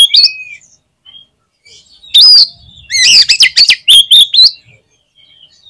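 A songbird sings loud, sharp whistles close by.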